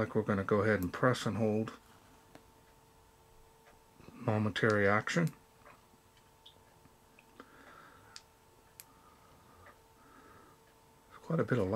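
A flashlight button clicks on and off.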